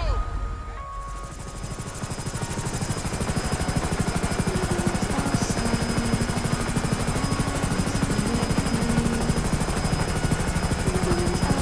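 Helicopter rotor blades chop steadily, growing louder as the helicopter lifts off.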